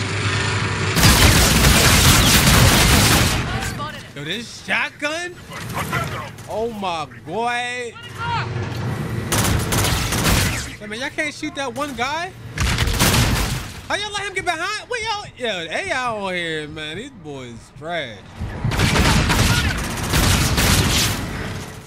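A game rifle fires in loud bursts.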